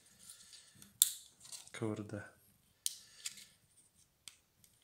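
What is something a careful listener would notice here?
Small plastic parts click and snap as a device is taken apart with a screwdriver.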